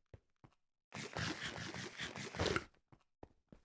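Loud crunching and munching of food being eaten.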